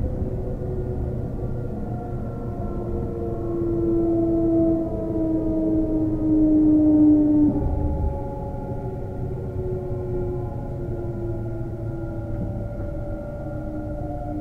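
Train wheels rumble low on the rails.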